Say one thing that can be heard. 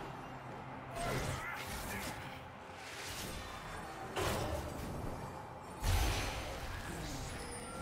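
Magical blasts whoosh and boom in sudden bursts.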